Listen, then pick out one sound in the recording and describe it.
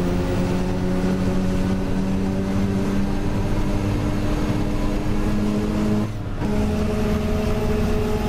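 A bus engine drones steadily, briefly dropping away during a gear change.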